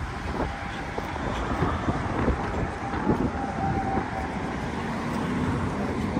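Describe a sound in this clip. Traffic hums steadily in a busy street.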